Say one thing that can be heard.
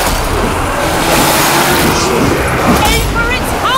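A horde of zombies groans and snarls.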